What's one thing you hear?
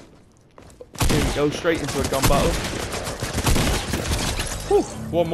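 Rapid gunfire rings out in loud bursts.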